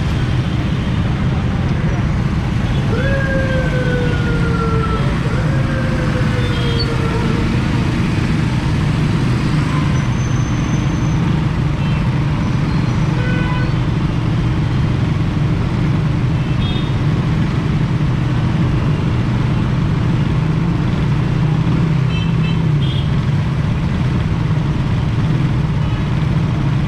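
Motorcycle engines idle and rumble close by in heavy traffic.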